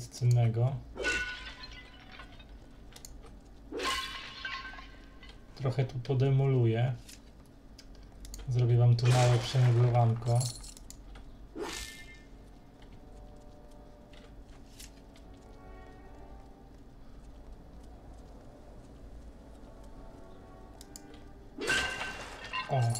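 Swords swing and clash in a fight.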